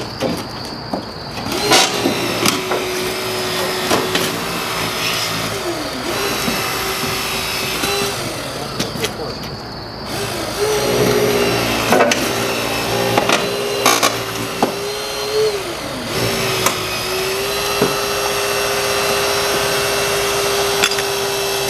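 Car metal creaks, crunches and snaps under the rescue tool.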